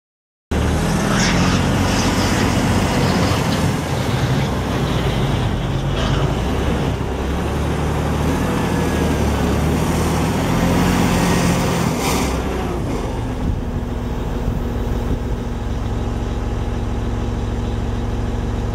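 A wheel loader's diesel engine rumbles and revs as it drives.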